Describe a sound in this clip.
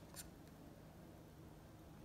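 A wooden stick scrapes lightly across a canvas.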